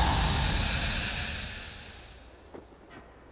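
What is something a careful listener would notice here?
A loud rushing whoosh sweeps past and fades.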